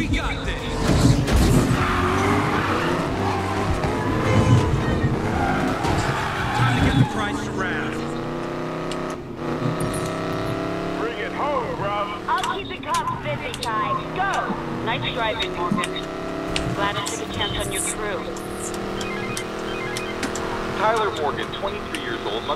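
A sports car engine roars loudly at high speed.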